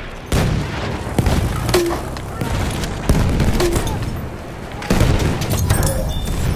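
An explosion rumbles nearby.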